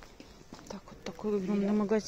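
Footsteps tap on a hard floor close by.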